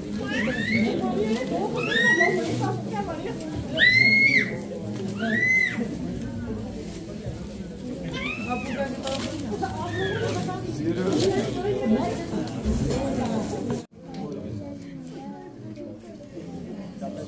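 Several men chatter together in a crowd.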